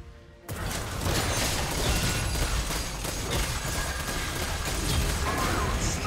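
Game weapons clash and strike rapidly.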